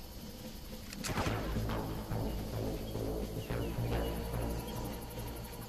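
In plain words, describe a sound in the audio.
A machine gun fires a burst.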